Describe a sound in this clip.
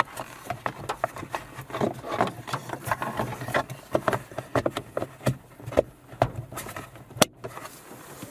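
Hands click and rustle plastic parts against a car's rear-view mirror mount.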